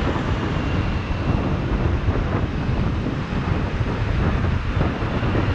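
Wind buffets loudly against a microphone on a moving scooter.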